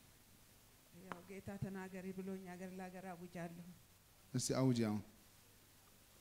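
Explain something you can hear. An elderly woman speaks quietly through a microphone.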